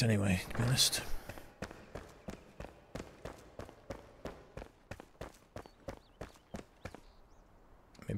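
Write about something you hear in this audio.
Footsteps tread steadily on stone.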